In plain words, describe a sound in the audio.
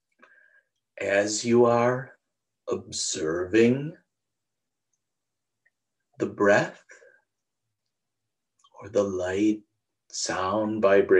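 A middle-aged man speaks calmly in short phrases, close to a microphone.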